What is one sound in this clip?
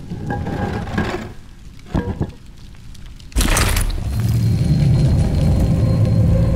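Flames crackle and roar in fire bowls.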